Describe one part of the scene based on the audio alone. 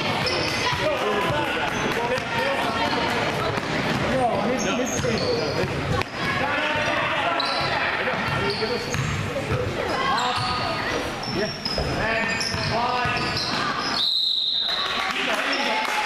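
Sneakers squeak sharply on a hard floor.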